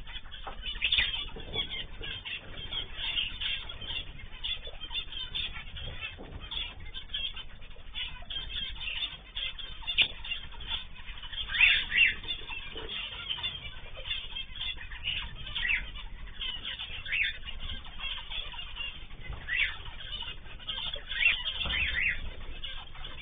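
Small parrots chirp and chatter in short, high bursts.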